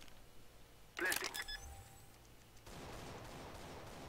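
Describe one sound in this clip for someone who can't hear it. A bomb keypad beeps as buttons are pressed.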